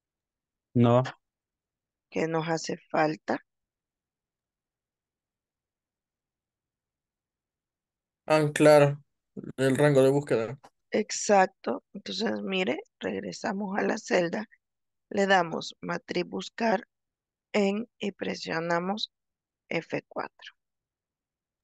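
A young woman speaks calmly over an online call, with pauses.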